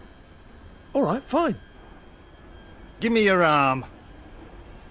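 An older man speaks tensely, close by.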